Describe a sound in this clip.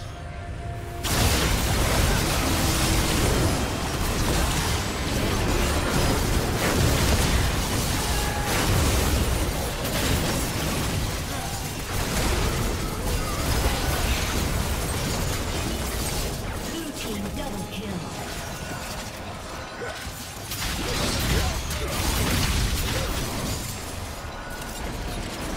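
Magic spells crackle, whoosh and explode in a busy video game battle.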